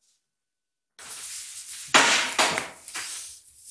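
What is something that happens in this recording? Metal instruments clink in a tray.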